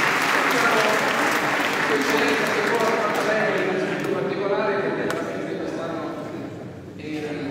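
A choir of men sings together in a large echoing hall.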